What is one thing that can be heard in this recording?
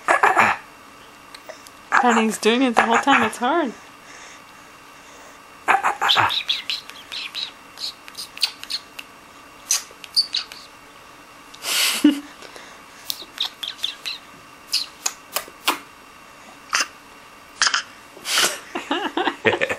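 A baby babbles and coos up close.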